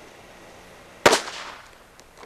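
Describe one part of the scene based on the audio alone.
A firecracker bangs sharply outdoors.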